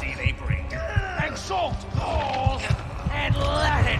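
A man speaks menacingly, close by.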